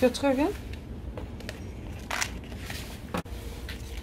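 A paper seed packet rustles and crinkles.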